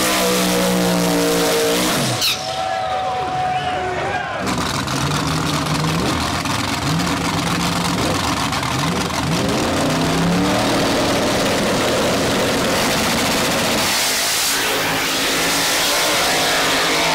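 A powerful race car engine roars and revs hard.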